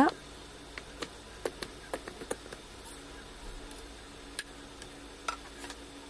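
A wooden spoon stirs soup in a pan.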